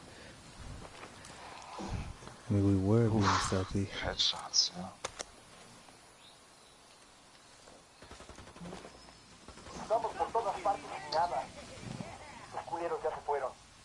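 Footsteps rustle through tall grass and brush.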